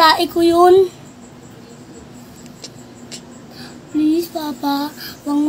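A young child cries and wails close by.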